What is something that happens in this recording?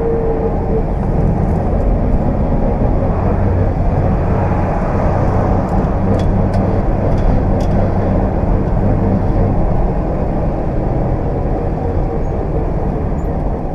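Wind roars loudly past the open car.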